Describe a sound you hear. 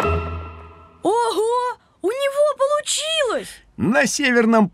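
A young boy speaks cheerfully and with animation.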